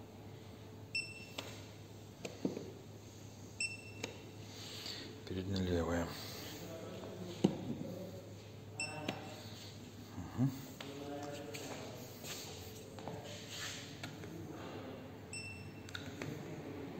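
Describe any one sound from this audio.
A handheld electronic gauge gives short, high beeps.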